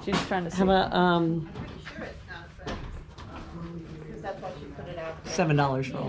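A middle-aged woman talks with animation close by.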